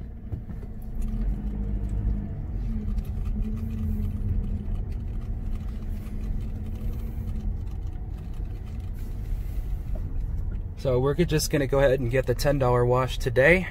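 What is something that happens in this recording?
A car engine hums steadily as the car drives slowly.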